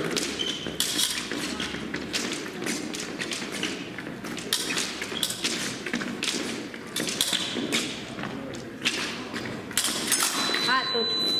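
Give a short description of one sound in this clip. Épée blades clash.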